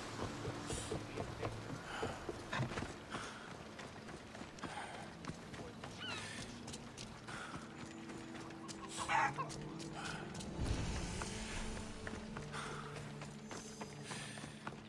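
Footsteps thud on wooden boards and then crunch on dirt as a man runs.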